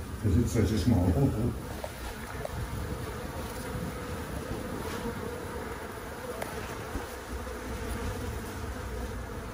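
A dense swarm of honeybees buzzes and hums steadily close by.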